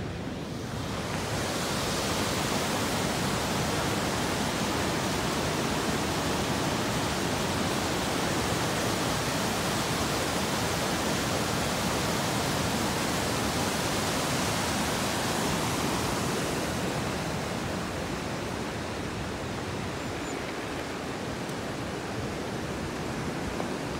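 A river rushes loudly over rocks nearby.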